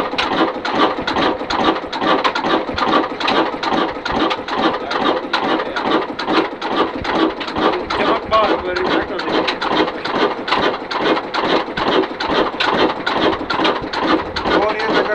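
An old single-cylinder diesel engine thumps as it runs.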